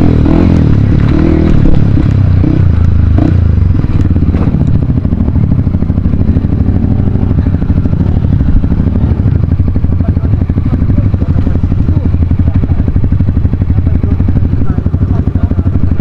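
A motorcycle engine runs close by with a steady low throb.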